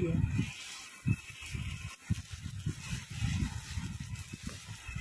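A plastic package crinkles and rustles in hands.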